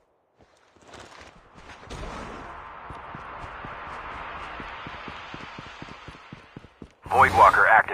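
Footsteps crunch over dry ground.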